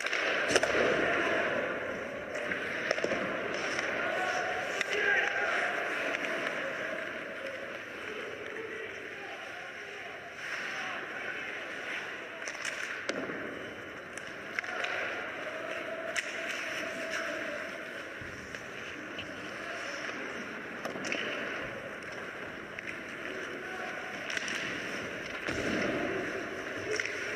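Ice skates scrape and carve across ice.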